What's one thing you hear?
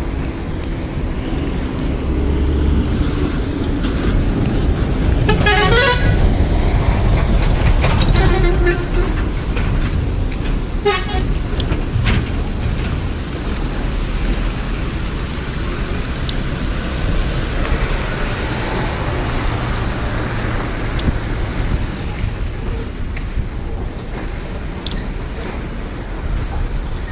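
Wind blusters outdoors, rumbling steadily.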